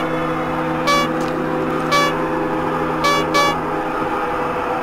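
A low electronic tone hums steadily, then stops.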